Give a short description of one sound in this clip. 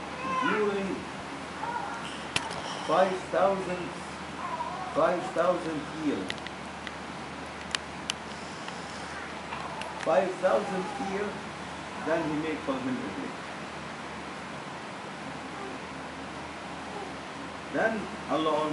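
An elderly man reads aloud in a low, chanting voice, close by, with pauses between phrases.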